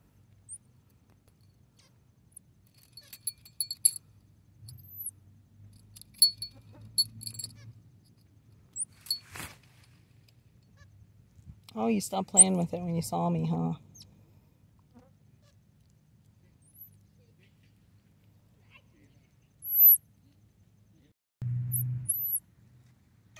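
A small monkey chirps in short, high squeaks.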